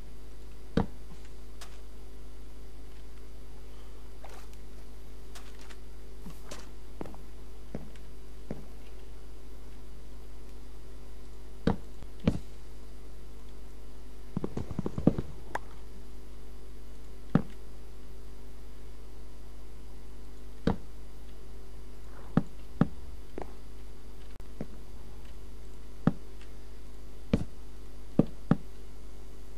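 Wooden blocks are placed with soft knocks, now and then.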